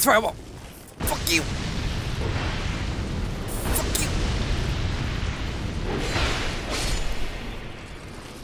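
Fireballs roar and burst loudly.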